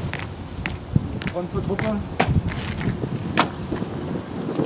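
Boots step on pavement.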